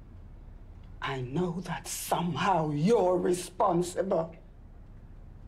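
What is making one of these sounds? A woman speaks calmly and firmly.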